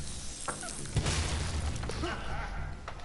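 A magical puff of smoke bursts with a loud whoosh.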